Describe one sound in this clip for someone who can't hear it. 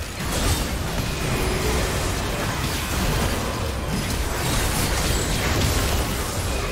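Spell blasts and magic impacts crackle and boom in a fierce game battle.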